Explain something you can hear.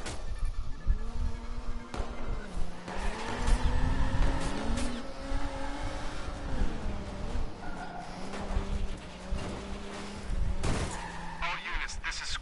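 A car engine revs and roars as it speeds up and slows down.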